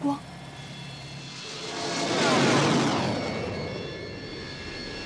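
A jet roars past overhead.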